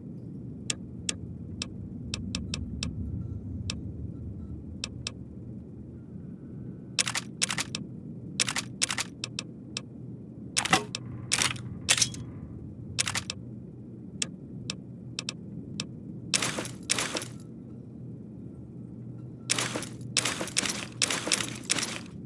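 Short menu clicks tick sharply, sometimes in quick bursts.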